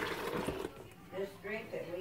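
Thick juice slops and pours into a plastic container.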